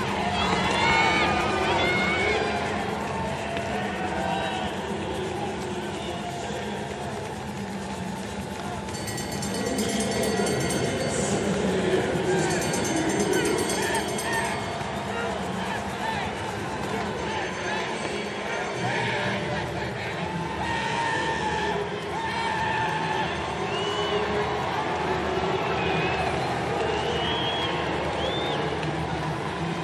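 A stadium crowd cheers and roars in a large open arena.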